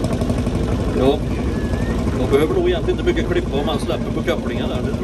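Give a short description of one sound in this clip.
A man talks nearby over the engine.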